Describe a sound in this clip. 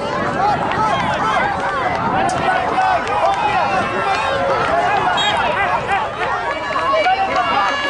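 A man calls out loudly from the sideline.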